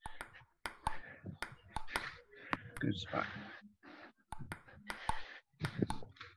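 A ping pong ball clicks sharply off a paddle.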